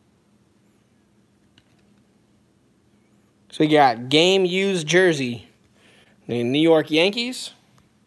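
Hands handle a hard plastic card case, with faint taps and rubs.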